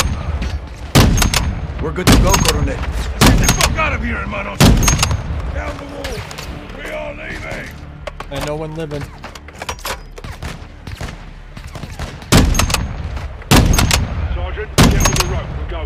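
A rifle fires loud single shots, one after another.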